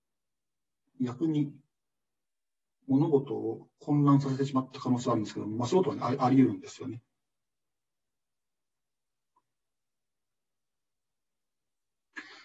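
A young man speaks calmly through a microphone in short bursts, with pauses between.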